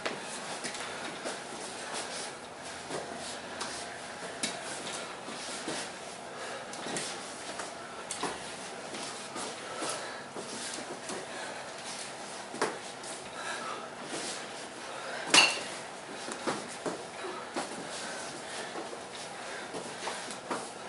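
Metal walking frames clatter and knock on the floor.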